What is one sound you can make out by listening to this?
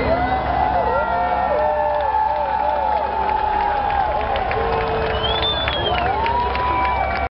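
A man sings through a microphone over the music.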